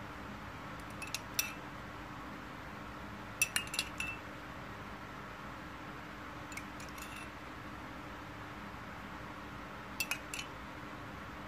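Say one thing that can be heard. A metal spoon taps lightly against a plate a few times.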